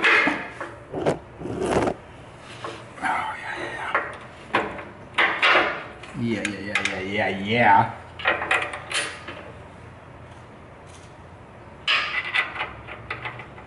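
Hands knock and click against metal parts.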